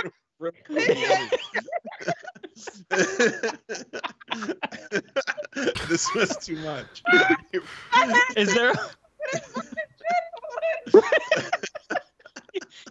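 A man laughs and talks into a microphone.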